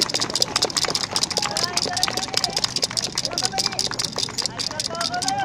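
Upbeat festival music with rapid percussion and a melody plays loudly through outdoor loudspeakers.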